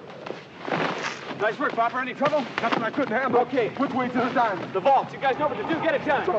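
A man shouts loudly and breathlessly.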